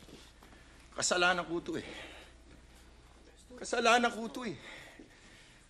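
A middle-aged man speaks loudly with animation, close by.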